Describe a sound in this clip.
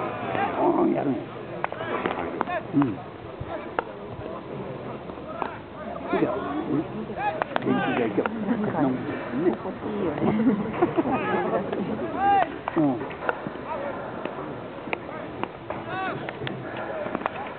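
Young men chatter and call out outdoors.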